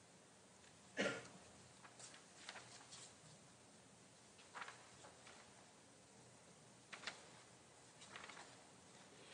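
Paper rustles as sheets are handled.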